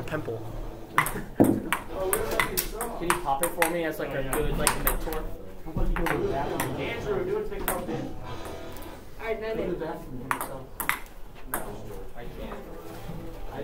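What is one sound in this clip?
A ping pong ball clicks back and forth on paddles and a table.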